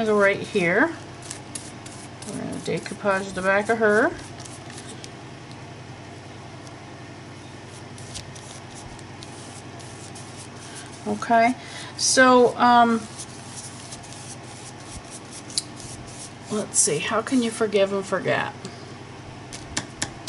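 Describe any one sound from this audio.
A brush dabs and scrapes lightly on paper.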